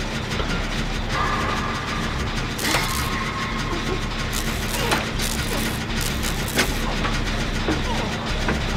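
A machine rattles and clanks as it is worked on.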